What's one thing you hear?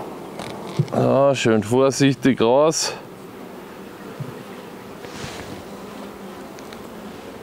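Bees buzz around a hive.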